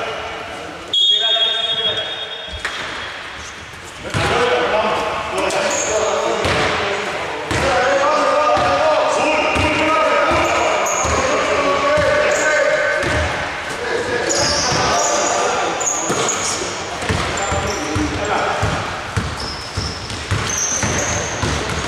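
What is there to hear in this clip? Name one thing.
Basketballs bounce on a wooden floor in a large echoing hall.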